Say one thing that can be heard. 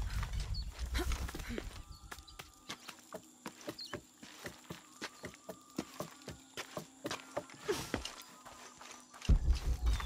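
Hands and feet knock on the rungs of a wooden ladder.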